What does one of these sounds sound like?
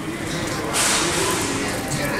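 A shopping cart rattles as it rolls across a hard floor.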